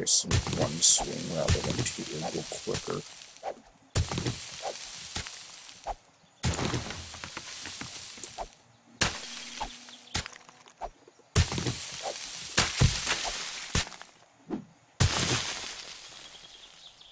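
A shovel digs into earth with repeated thuds.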